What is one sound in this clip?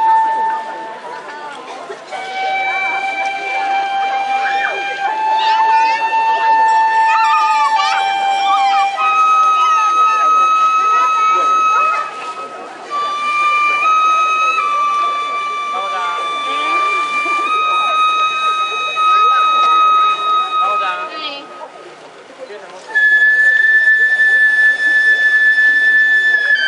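Court music with a long, held wind instrument melody plays over a loudspeaker outdoors.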